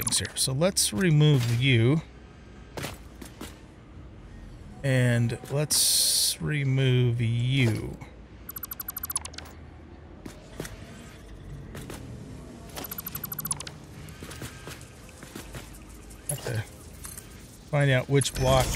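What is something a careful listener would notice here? An older man talks with animation into a microphone.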